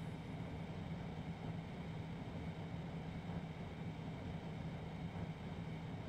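A diesel locomotive engine hums and rumbles steadily.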